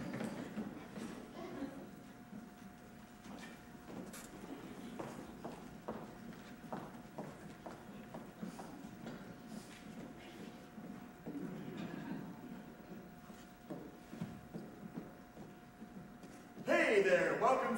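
Footsteps patter on a wooden stage in a large echoing hall.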